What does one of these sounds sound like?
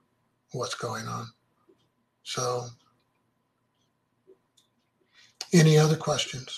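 An older man speaks calmly through an online call, in short phrases with pauses.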